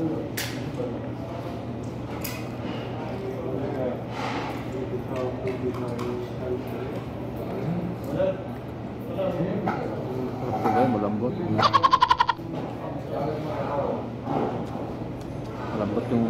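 A man chews food noisily, close by.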